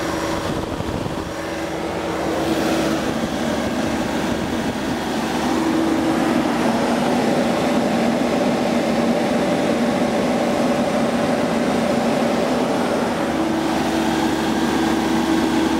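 A diesel engine idles with a steady low rumble and hum.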